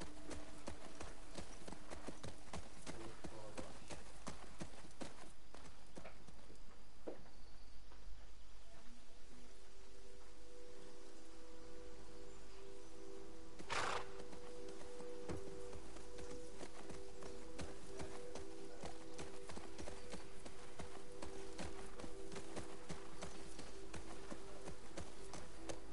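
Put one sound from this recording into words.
A horse's hooves clop steadily at a walk.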